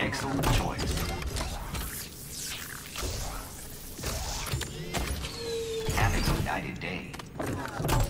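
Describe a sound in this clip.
A machine whirs and clanks loudly with mechanical hisses.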